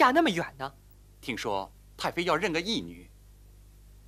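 A young man speaks tensely and close by.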